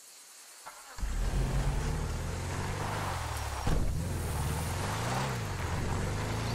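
A vehicle engine rumbles and revs.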